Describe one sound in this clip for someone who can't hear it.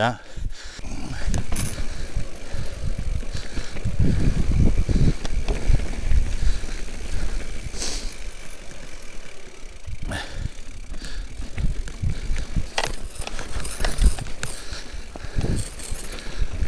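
Mountain bike tyres crunch and rattle over a rocky dirt trail.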